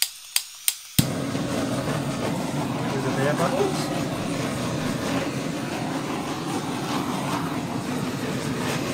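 A blowtorch roars steadily.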